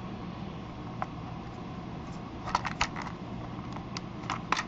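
Plastic toy parts click and rattle as they are handled.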